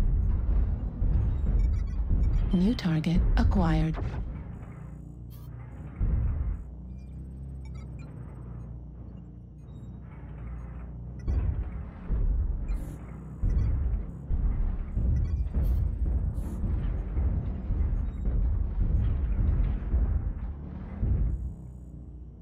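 Heavy mechanical footsteps thud with a deep, steady rumble.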